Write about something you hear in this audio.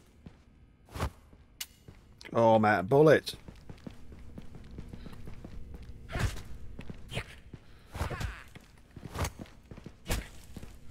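Pistol shots bang sharply.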